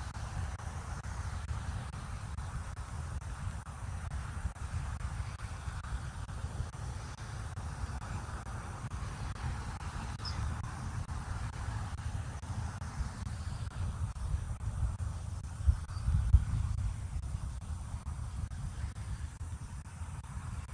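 Wind blows and rumbles against the microphone outdoors.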